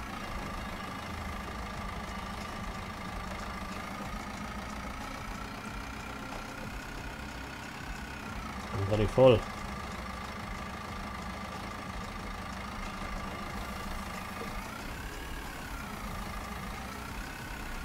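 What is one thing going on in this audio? A loader engine hums steadily, rising and falling slightly in pitch.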